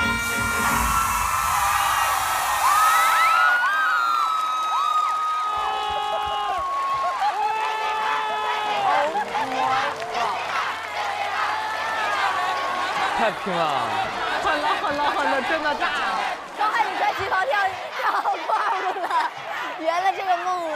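Upbeat pop music plays loudly.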